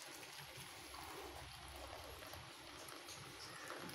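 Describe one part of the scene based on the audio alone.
Liquid pours from a pot into a metal mug.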